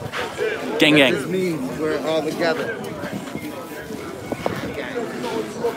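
Men and women talk with animation nearby, outdoors.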